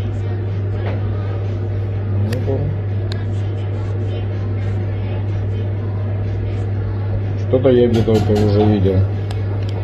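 A slip of paper rustles between fingers.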